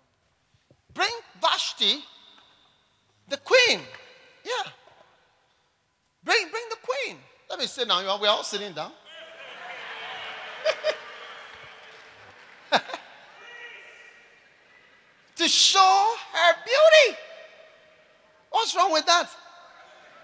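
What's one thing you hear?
A man preaches with animation through a loudspeaker in a large echoing hall, in short bursts with pauses.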